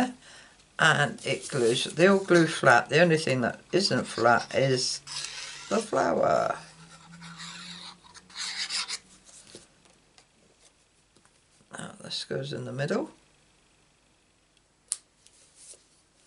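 Paper rustles softly as a card is handled and pressed down.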